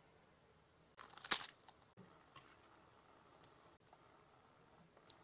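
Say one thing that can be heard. Water pours and trickles into a plastic tray.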